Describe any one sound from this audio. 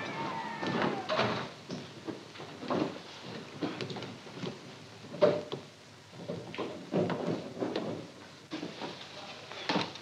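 An elderly man speaks slowly and solemnly in an echoing hall.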